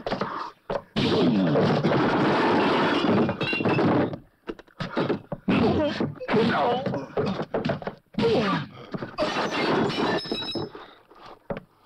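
A man groans and grunts in pain.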